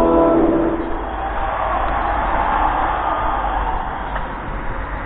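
A car drives past on a wet street nearby.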